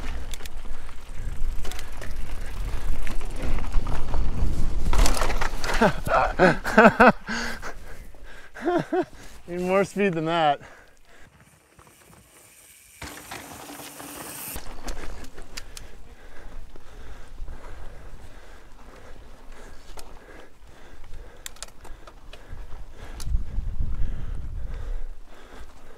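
Bicycle tyres crunch and rumble over dirt and rock.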